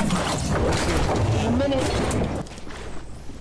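Wind rushes past loudly during a glide.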